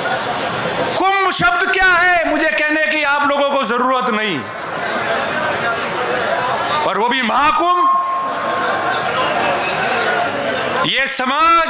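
A man speaks loudly and passionately through a microphone and loudspeakers.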